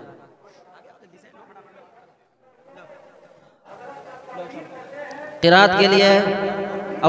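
A man speaks through a microphone and loudspeaker.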